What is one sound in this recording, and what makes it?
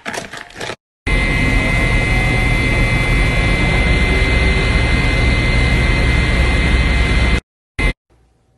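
A machine hums loudly and steadily.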